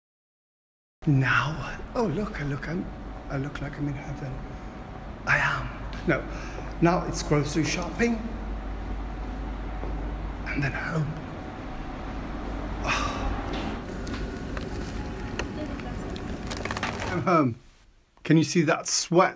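A middle-aged man talks with animation close to a phone microphone.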